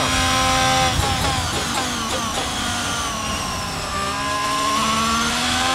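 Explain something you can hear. A Formula One car's engine drops in pitch as it brakes and downshifts.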